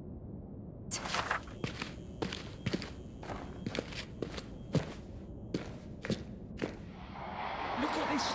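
Footsteps thud slowly on stone steps.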